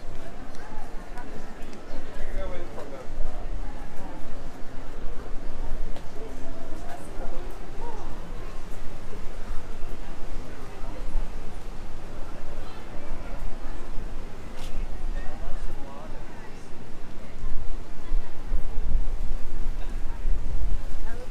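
Footsteps scuff on paving.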